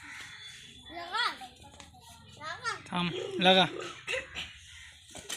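A young child calls out excitedly nearby.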